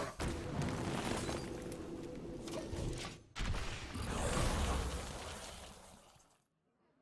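Magical game sound effects whoosh and crash as one figure strikes another.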